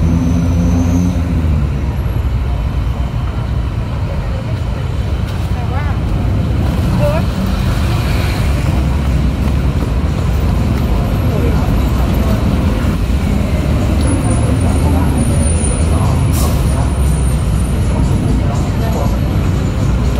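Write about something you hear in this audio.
Traffic rumbles steadily nearby.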